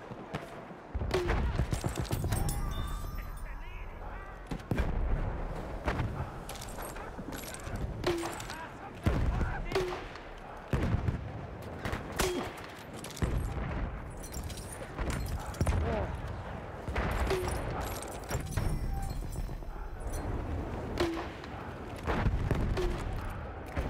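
Rifle shots crack loudly, again and again.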